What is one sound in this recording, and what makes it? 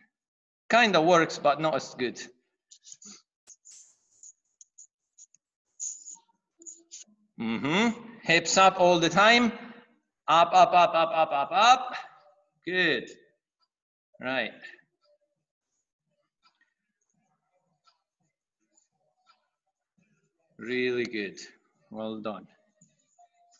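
A man speaks calmly and closely through an online call microphone, in short bursts with pauses.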